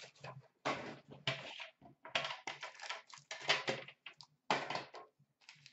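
Items clatter as hands rummage through a plastic bin.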